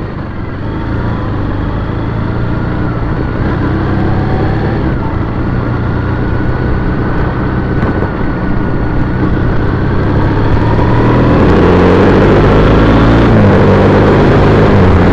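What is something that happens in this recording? A motorcycle engine hums and revs up as it pulls away.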